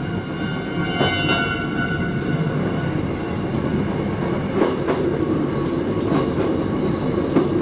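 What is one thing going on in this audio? Train wheels clatter and click over rail joints and points.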